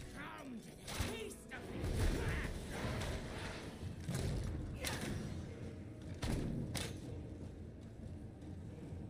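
Spells crackle and burst in a game battle.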